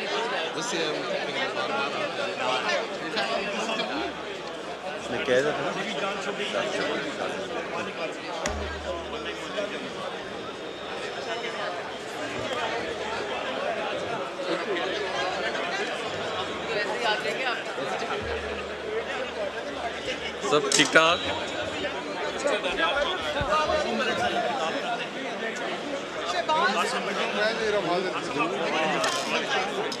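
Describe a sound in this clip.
Many men murmur and chatter in a large echoing hall.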